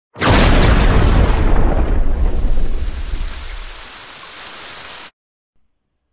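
Rain pours down heavily.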